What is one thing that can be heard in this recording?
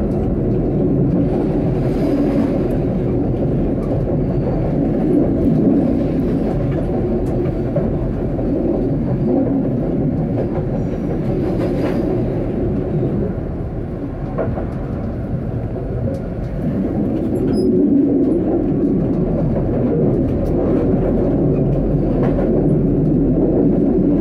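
Tram wheels clatter over rail joints.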